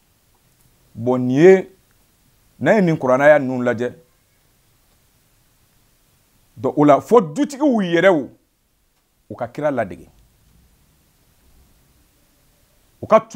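A man speaks slowly and with emphasis into a close microphone, in long pauses between phrases.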